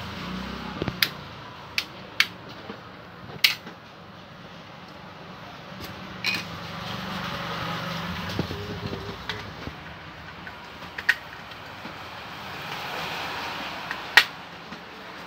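A plastic switch plate clicks and knocks sharply now and then.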